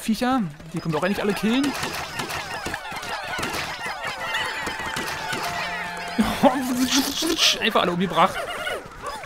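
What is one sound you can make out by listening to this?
Small cartoon creatures chirp and squeak in high, busy voices.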